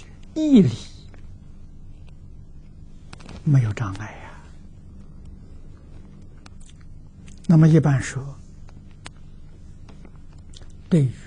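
An elderly man speaks slowly and calmly in short phrases, close to a microphone.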